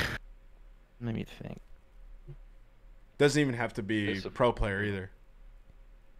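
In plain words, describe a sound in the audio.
A man talks casually through a headset microphone, heard as if over an online call.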